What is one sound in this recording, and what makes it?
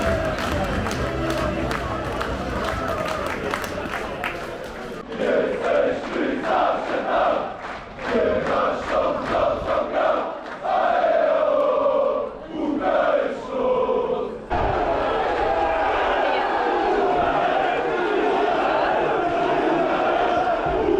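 A large crowd of fans chants loudly in unison.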